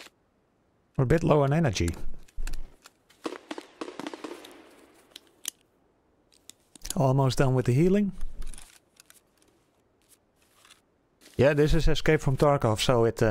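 A young man talks casually and close into a microphone.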